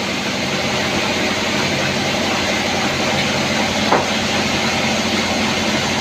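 A machine engine runs with a steady loud drone.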